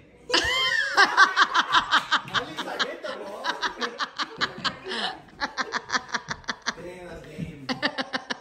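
People clap their hands in a quick rhythm.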